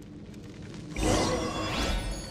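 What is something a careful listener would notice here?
A magical whoosh swells and rushes.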